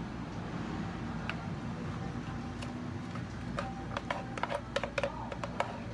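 A thick drink is poured from a blender jug into plastic cups.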